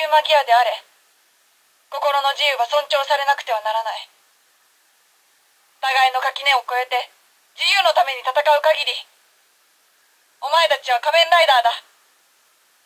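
A toy gadget plays loud electronic voice announcements through a small, tinny speaker.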